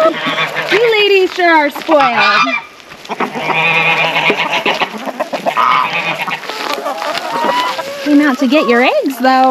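Many hens cluck and squawk close by.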